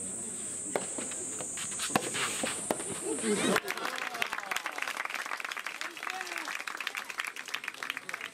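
A tennis ball is struck back and forth with rackets.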